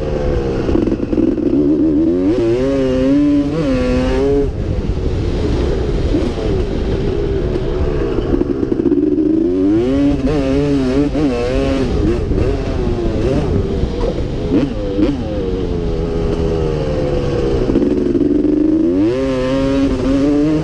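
Wind buffets loudly against a helmet.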